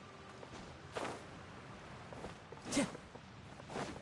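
Wind rushes past as a game character glides.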